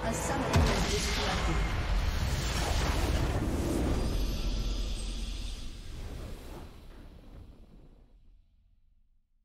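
A triumphant victory fanfare swells and slowly fades away.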